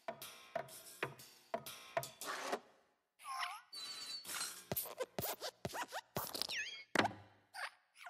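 A small lamp hops and lands with sharp thumps.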